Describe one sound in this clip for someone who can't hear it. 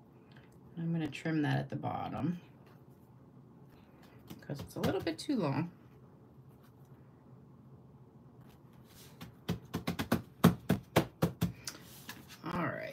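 Card stock taps and rustles as it is pressed and handled.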